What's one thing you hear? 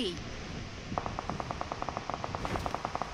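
A parachute flutters in the wind.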